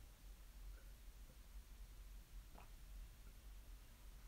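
A woman gulps a drink.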